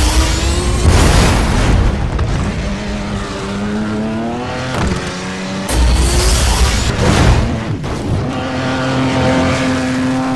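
A car engine whines and revs up and down.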